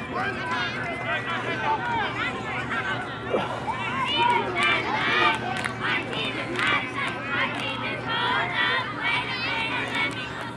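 Children shout and chatter excitedly across an open field outdoors.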